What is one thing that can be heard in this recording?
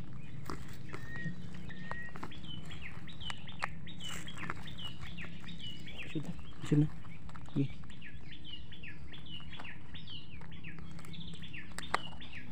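Dry twigs and leaves rustle under hands.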